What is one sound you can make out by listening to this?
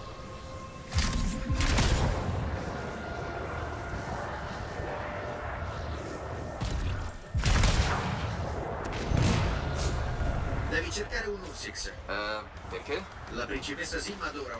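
Jet thrusters roar in loud bursts.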